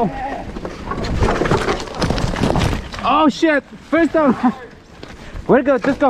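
A bicycle crashes to the ground with a clatter.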